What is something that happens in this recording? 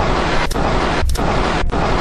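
Loud static hisses and crackles.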